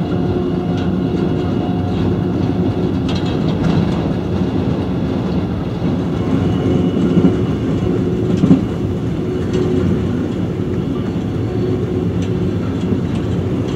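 Tyres roll over the road with a low steady roar.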